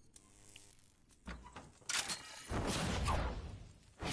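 A pickaxe strikes stone with sharp knocks.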